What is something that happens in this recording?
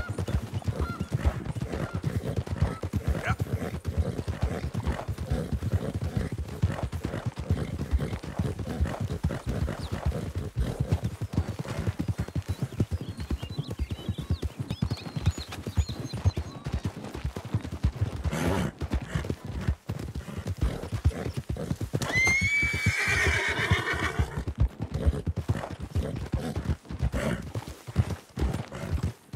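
Horse hooves thud rapidly on a dirt trail at a gallop.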